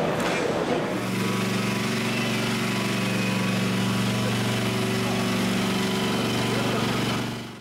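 A small engine hums steadily.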